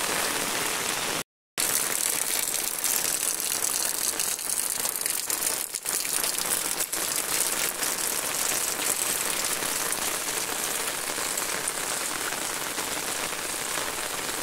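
Shallow water ripples across a road.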